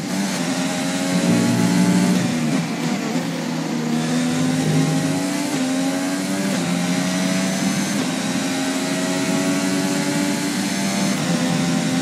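A racing car engine whines loudly, its pitch rising through the gears and dropping as it slows.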